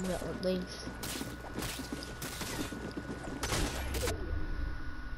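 Sharp game hit sounds burst out in quick succession.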